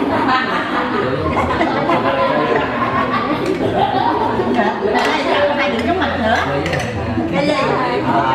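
Several men talk and laugh nearby with animation.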